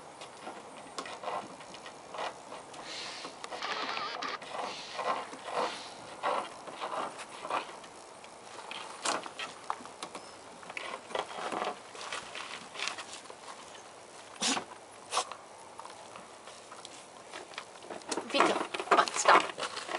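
A puppy scratches and paws at a wooden fence.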